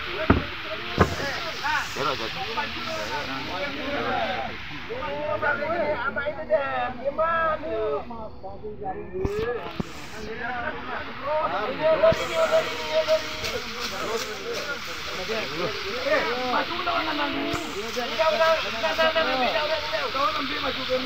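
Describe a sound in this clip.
Several men talk and call out close by, outdoors.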